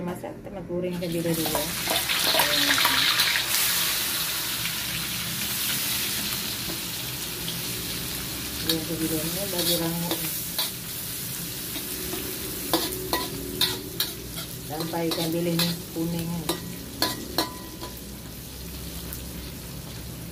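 Hot oil sizzles loudly as fish is dropped into it.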